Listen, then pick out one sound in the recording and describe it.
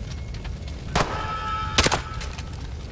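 A gun fires two loud, echoing shots.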